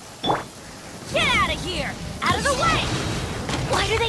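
A burst of magical fire whooshes and crackles.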